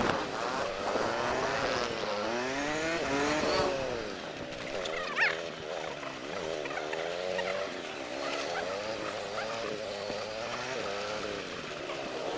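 A motorcycle engine hums close by and revs up and down.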